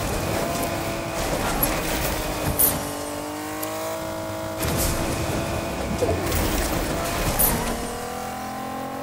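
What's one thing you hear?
A car engine hums and revs steadily as the car drives over rough ground.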